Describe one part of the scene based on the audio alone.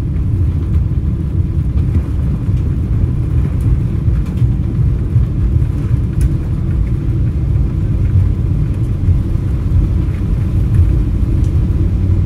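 A jet engine roars steadily as an airliner taxis.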